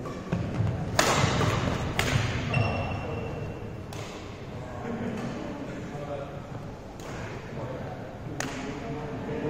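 Badminton rackets smack shuttlecocks in sharp hits that echo through a large hall.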